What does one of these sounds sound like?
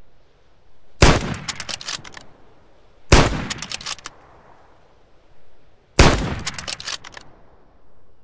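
A rifle fires three loud shots that echo away.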